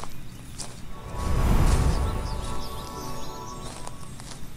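A shimmering game chime plays as a path is traced.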